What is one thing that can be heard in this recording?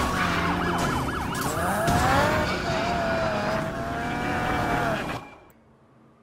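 A car engine revs loudly.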